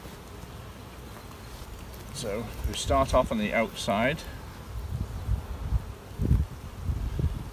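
Bees buzz softly close by.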